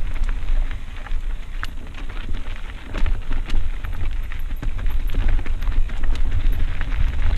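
A mountain bike rattles and clatters down a rocky dirt trail.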